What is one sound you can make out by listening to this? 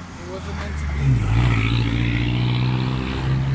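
A vehicle engine rumbles loudly as traffic passes close by.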